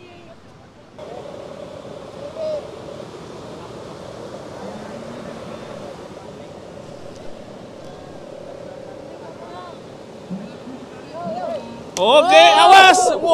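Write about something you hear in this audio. Waves break on a shore with a steady rush.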